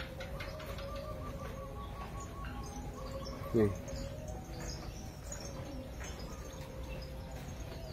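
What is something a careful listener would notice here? A calf suckles noisily at its mother's udder.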